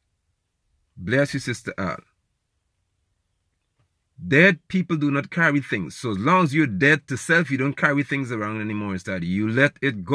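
A man speaks calmly and close up, with pauses.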